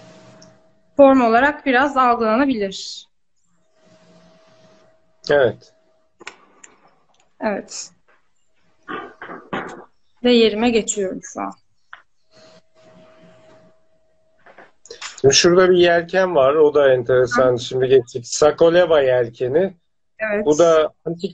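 A middle-aged man talks calmly over an online call.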